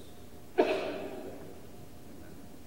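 A metal dish clinks sharply and rings out in a large echoing hall.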